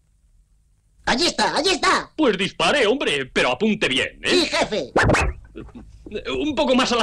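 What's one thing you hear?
A man speaks excitedly.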